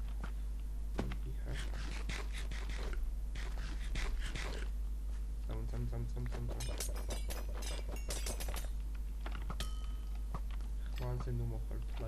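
Footsteps crunch softly over gravel and dirt.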